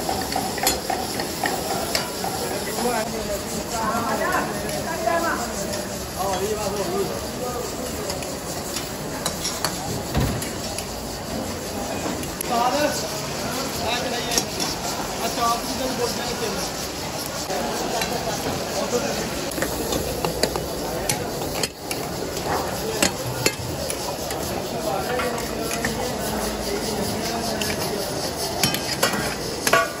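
Men talk in the distance among a busy crowd.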